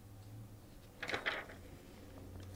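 A magazine page rustles as it is turned.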